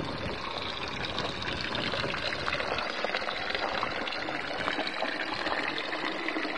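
Water trickles and splashes from a pipe into a basin.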